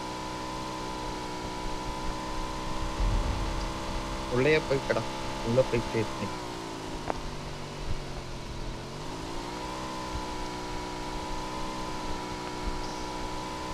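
A motorbike engine hums steadily, dropping in pitch and then rising again.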